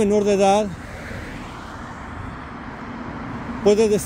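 A car drives past close by on the road.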